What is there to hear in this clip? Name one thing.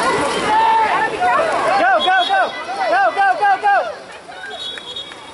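Swimmers splash and kick through water outdoors.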